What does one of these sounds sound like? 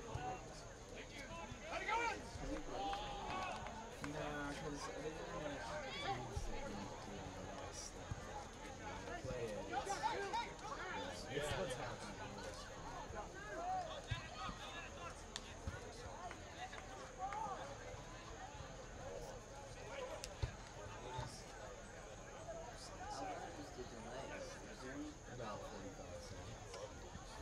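Players call out to each other across a field.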